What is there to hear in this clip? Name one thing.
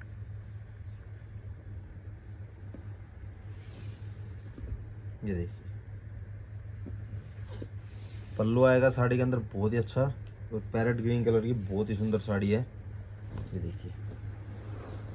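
Fabric rustles softly as it is handled.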